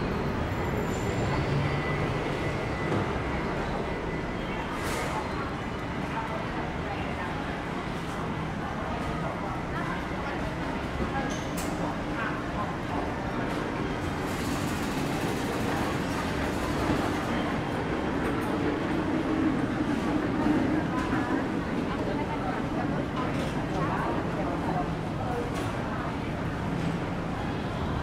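Indoor crowd chatter echoes through a large hall.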